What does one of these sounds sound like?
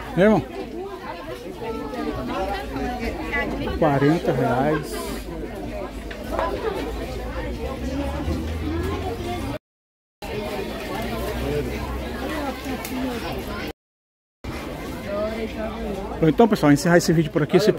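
A crowd murmurs and chatters all around, outdoors.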